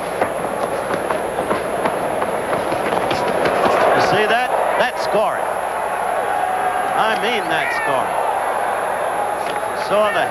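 A crowd in a large arena cheers and shouts.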